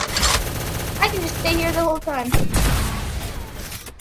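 A game gun fires a shot.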